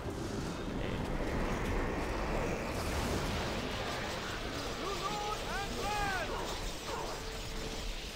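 Lightning crackles and strikes.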